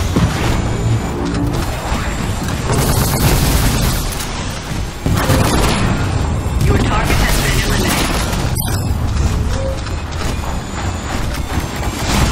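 Heavy cannon fire booms repeatedly.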